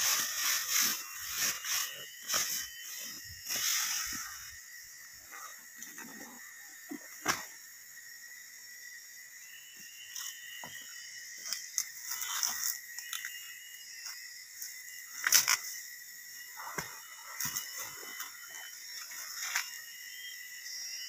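A plastic sack rustles as it is handled.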